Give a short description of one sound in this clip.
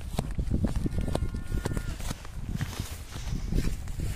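Tall grass rustles and swishes as someone walks through it.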